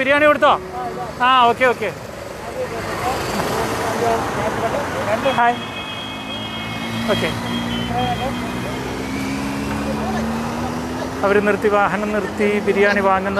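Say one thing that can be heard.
A woman calls out loudly nearby.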